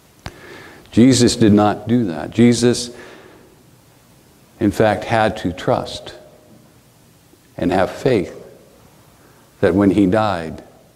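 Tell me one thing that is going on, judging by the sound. A middle-aged man speaks calmly and deliberately, in short phrases with pauses.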